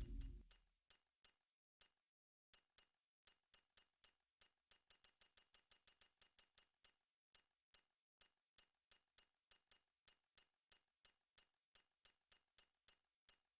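Short electronic menu clicks tick quickly, one after another, as a selection moves through a list.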